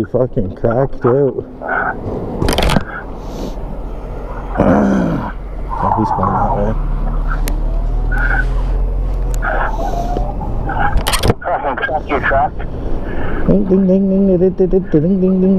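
A motorcycle engine hums and revs while riding.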